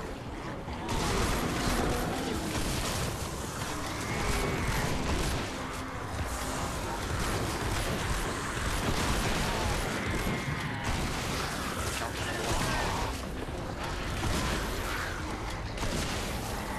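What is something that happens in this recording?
Blows from a melee weapon swish and thud repeatedly.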